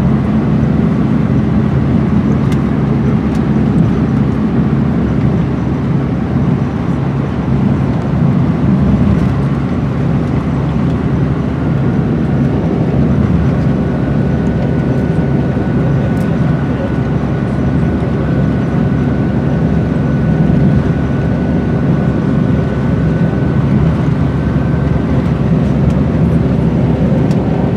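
Tyres rumble over gravel and sand.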